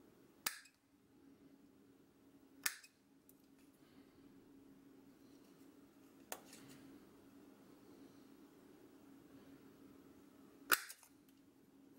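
Small metal parts click and clink together.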